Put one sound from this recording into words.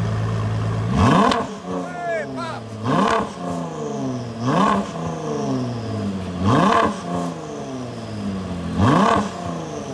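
A sports car engine revs sharply again and again.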